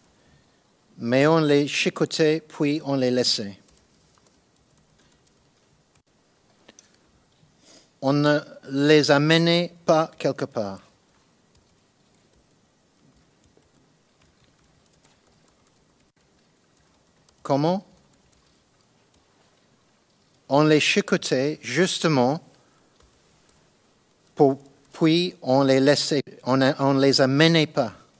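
A man reads out slowly into a microphone, in bursts with long pauses.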